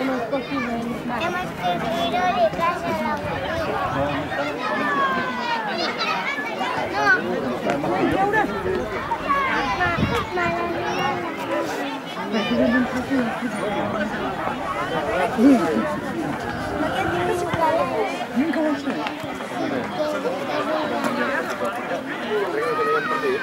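Young boys shout and chatter outdoors.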